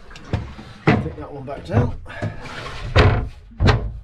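A hatch lid thumps shut.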